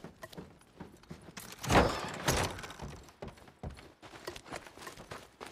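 Footsteps thud on wooden boards and then on dirt.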